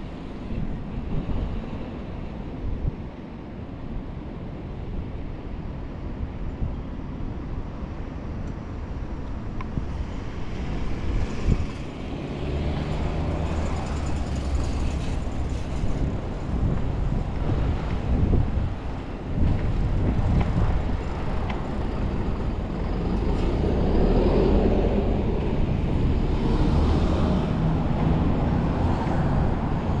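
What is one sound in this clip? Traffic hums from a nearby road.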